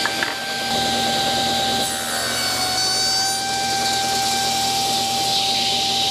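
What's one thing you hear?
A table saw blade cuts through wood.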